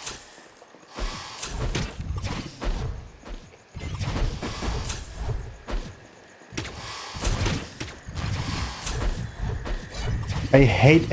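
Sword slashes and hits clash rapidly in a game fight.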